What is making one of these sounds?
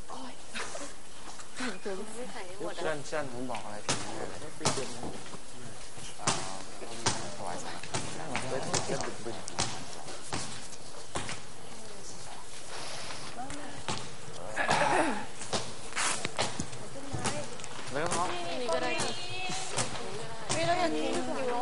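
Young men and women talk and chatter nearby.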